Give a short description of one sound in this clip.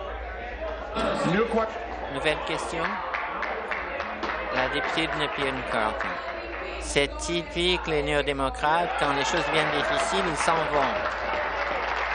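A man speaks firmly through a microphone in a large hall.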